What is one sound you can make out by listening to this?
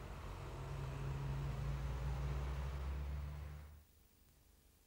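Traffic rumbles along a street nearby.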